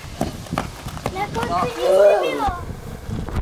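A child shouts outdoors.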